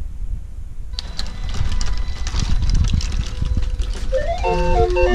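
A mechanical music machine starts playing with whirring and tinkling notes.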